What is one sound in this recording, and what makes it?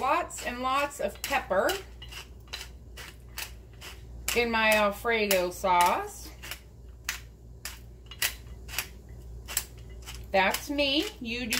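A pepper mill grinds with quick rattling clicks.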